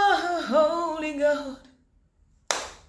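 A woman wails in a high, pleading voice close by.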